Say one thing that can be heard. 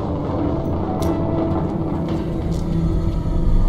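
Magic spells crackle and whoosh in a fantasy game.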